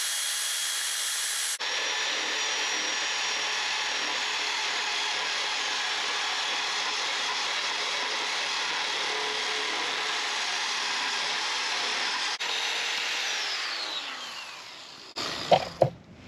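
An air-powered grinder whines steadily against metal, then winds down.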